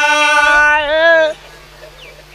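An electronic keyboard plays a sustained chord.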